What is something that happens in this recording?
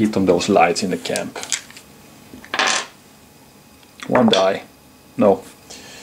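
Dice roll and knock against the wooden sides of a tray.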